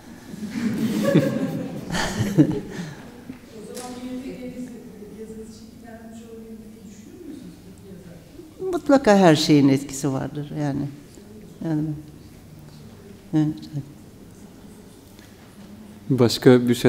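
A woman speaks with animation into a microphone, laughing at times.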